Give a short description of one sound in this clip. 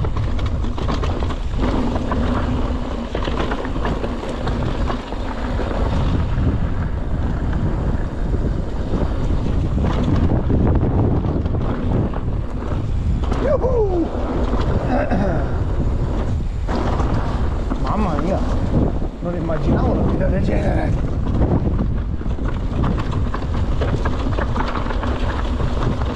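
A bike's frame and chain rattle over bumps.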